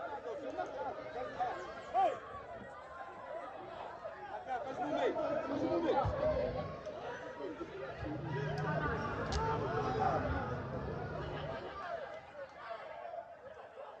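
Young players shout and call to each other in the distance across an open field outdoors.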